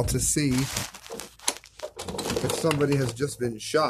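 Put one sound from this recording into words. Foil packaging crinkles and rustles up close.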